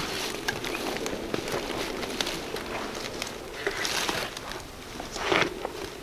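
Hunting gear rustles as a man climbs over a log.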